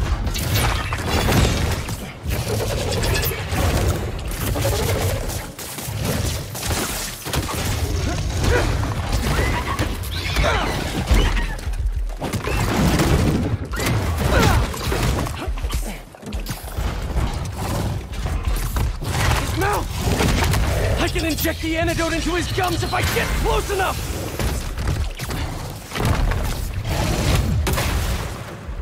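Heavy blows and thuds land in a fight.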